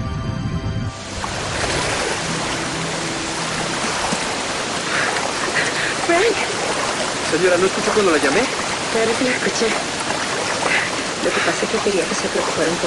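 Water splashes and churns around swimmers.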